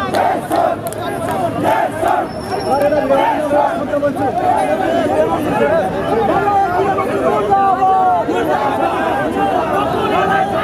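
A large crowd of men shouts and chants loudly outdoors.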